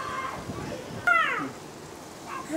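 A toddler babbles in a high voice.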